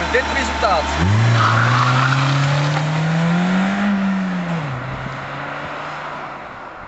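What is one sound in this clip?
A car engine revs and the car pulls away.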